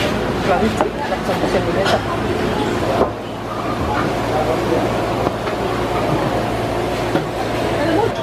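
A plastic food box crinkles and snaps shut.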